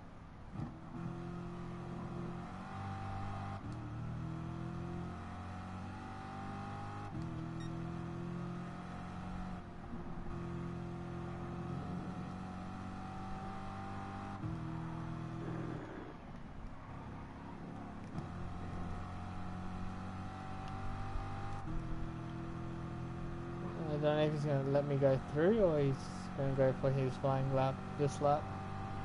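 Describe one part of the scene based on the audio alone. A racing car engine roars, climbing in pitch and dropping back with each gear change.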